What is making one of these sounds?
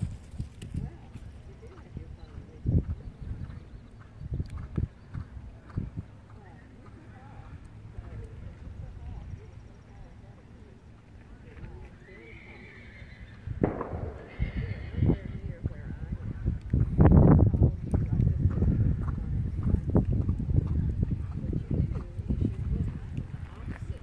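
A horse trots on soft sand, its hoofbeats growing louder as it comes close.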